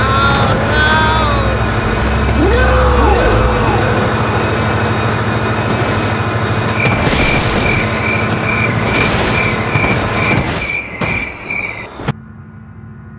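A train engine rumbles loudly.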